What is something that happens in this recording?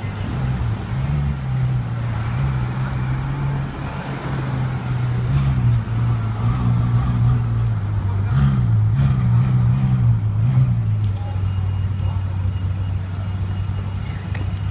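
A sports car engine rumbles deeply close by, revving as the car pulls away.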